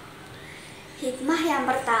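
A young girl speaks calmly and close by.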